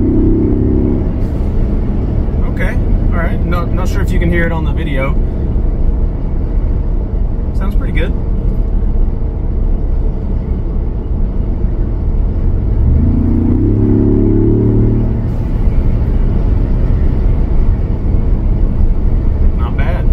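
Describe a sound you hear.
A car engine rumbles steadily.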